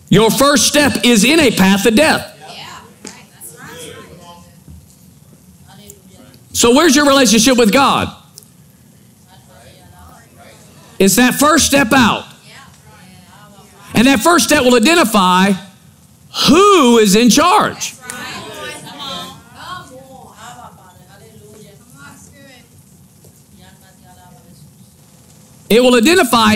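A man speaks with animation through a microphone, pausing between phrases in a large echoing hall.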